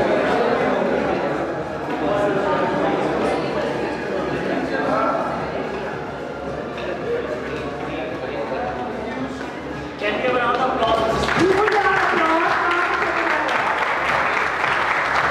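Several adult men and women chat and talk over one another nearby.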